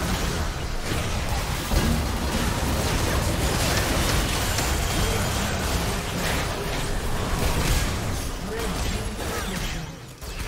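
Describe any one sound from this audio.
Game spell effects and attacks crackle and boom in a fast battle.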